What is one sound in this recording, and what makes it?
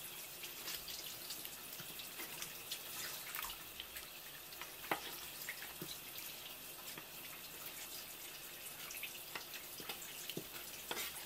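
Wet squid flesh squelches and slaps under hands.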